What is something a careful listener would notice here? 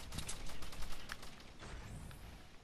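Quick clicks and thuds of pieces snapping into place repeat rapidly.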